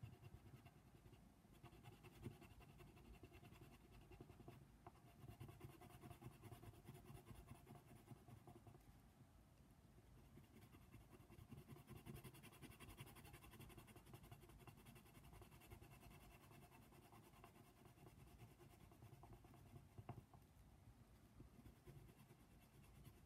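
A colored pencil scratches softly and rapidly on paper, close up.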